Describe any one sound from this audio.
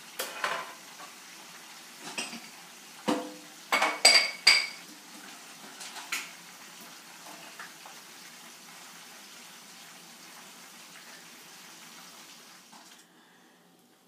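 Food sizzles quietly in a covered pan.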